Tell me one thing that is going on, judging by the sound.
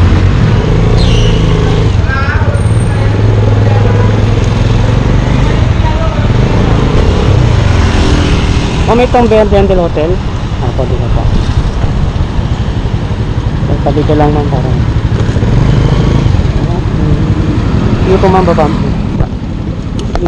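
A motorcycle engine hums and rumbles steadily up close.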